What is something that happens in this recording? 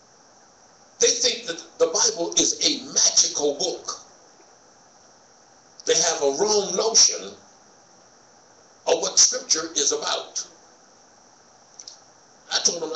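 A man speaks slowly and deliberately into a microphone, in short phrases separated by pauses.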